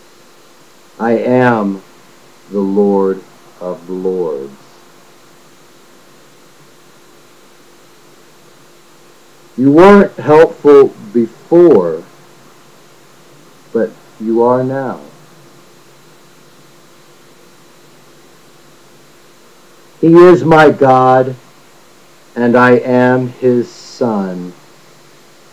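A middle-aged man speaks calmly in short bursts close to a microphone, with long pauses.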